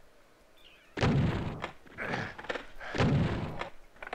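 A shotgun fires loud blasts twice.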